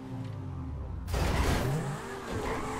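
A car lands hard with a loud thud.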